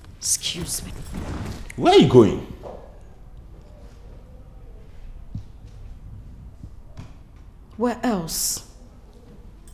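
A man speaks sharply and angrily, close by.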